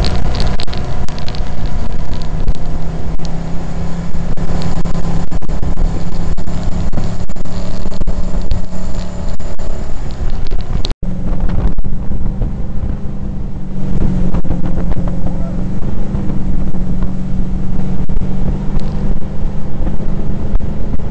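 Water sprays and splashes loudly behind a jet ski.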